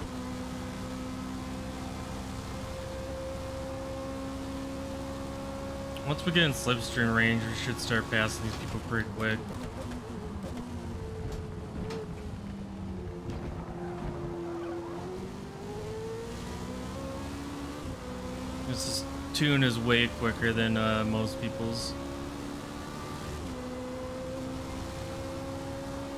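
A racing car engine whines at high speed, dropping in pitch as it slows and rising again as it speeds up.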